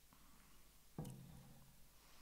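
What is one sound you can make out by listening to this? A mug is set down on a wooden table with a thud.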